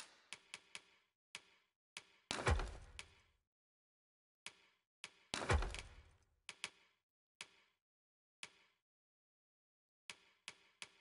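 Menu clicks tick quickly and sharply.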